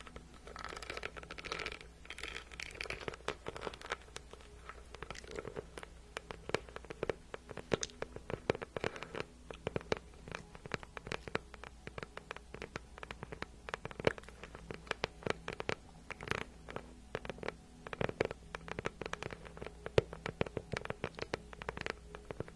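Fingernails tap and click rapidly on a hard purse close to a microphone.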